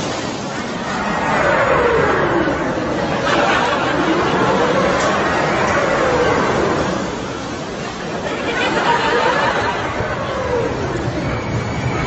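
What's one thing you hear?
Riders on a roller coaster scream loudly.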